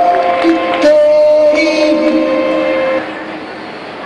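Music plays loudly through loudspeakers in a large echoing hall.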